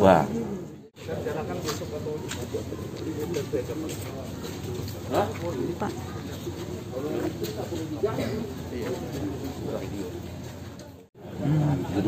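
Several men talk in a murmur nearby.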